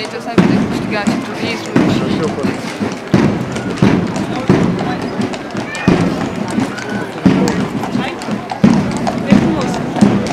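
Horses' hooves clop on paving stones.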